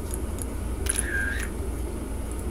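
A short electronic beep sounds.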